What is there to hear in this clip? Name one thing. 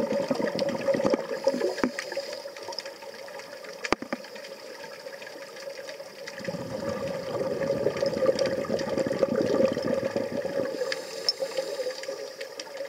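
Scuba divers breathe through regulators underwater, with bubbles rushing out.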